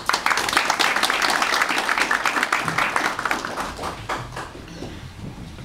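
An audience applauds and the clapping fades away.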